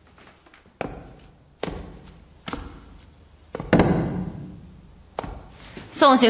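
Heavy footsteps thud slowly on a hard floor.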